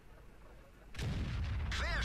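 A tank cannon fires a loud shot.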